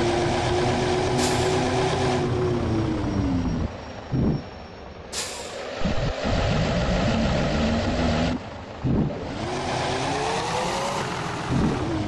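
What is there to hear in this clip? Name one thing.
A bus engine hums steadily, revving up and dropping as it shifts gears.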